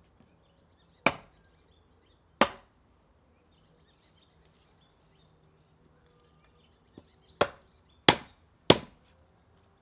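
A wooden mallet knocks a wooden leg into a log.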